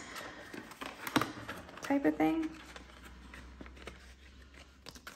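A plastic sleeve crinkles and rustles as it is handled.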